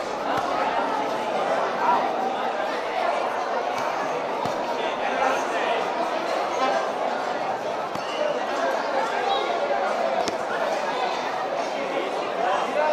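A crowd of spectators chatters steadily nearby.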